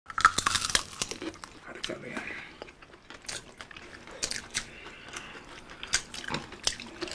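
Crispy food crackles as fingers break it apart.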